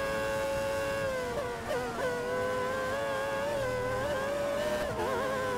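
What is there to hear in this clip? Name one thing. A racing car engine drops in pitch as the car brakes and shifts down.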